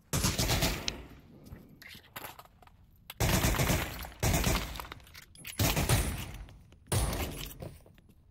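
A pistol magazine clicks out and snaps back in.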